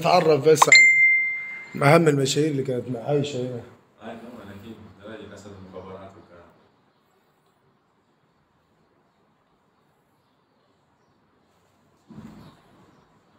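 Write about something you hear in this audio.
An elderly man talks on a phone nearby.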